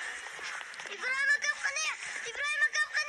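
A young boy speaks loudly and excitedly nearby.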